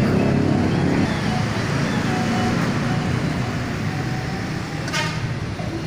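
A motor scooter engine idles nearby with a low rumble.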